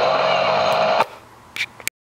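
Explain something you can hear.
A radio is switched off with a click.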